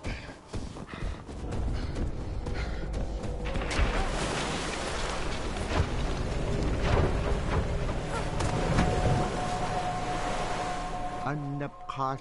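Strong wind howls and roars in a blizzard.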